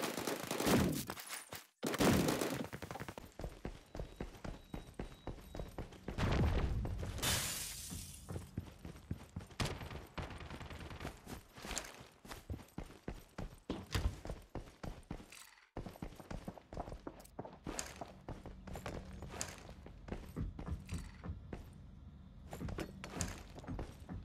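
Footsteps run over hard floors.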